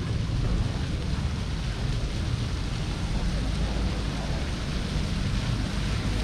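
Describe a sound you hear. People chatter quietly at nearby outdoor tables.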